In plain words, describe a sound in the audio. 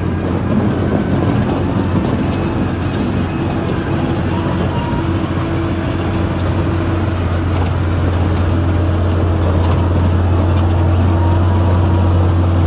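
A motor grader's diesel engine rumbles under load, growing louder as it comes closer.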